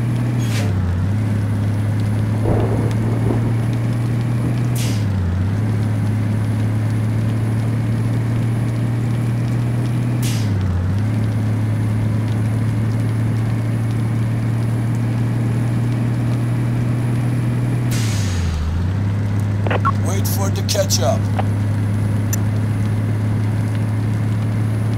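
A truck engine hums steadily, dipping briefly with each gear change as it speeds up.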